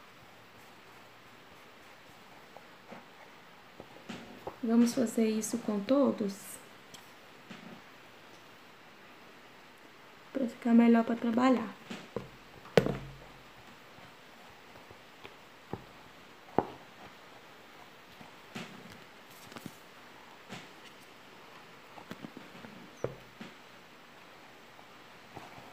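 Cloth rustles softly as hands fold it.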